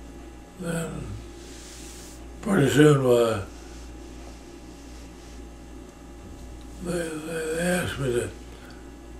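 An elderly man speaks slowly and calmly, close by, with pauses between his words.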